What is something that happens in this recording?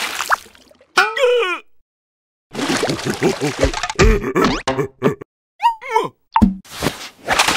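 A cartoon creature squeals and yelps in a high voice.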